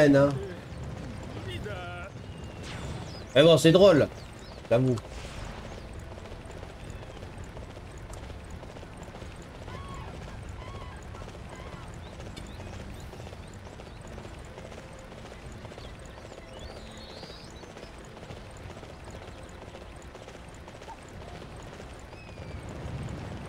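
A horse's hooves thud steadily at a gallop over dirt.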